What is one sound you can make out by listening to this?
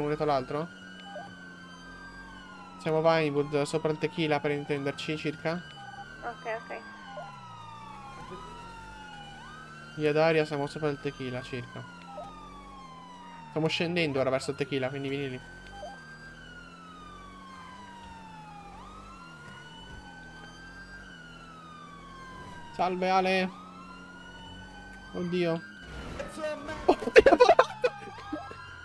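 A police siren wails steadily, rising and falling.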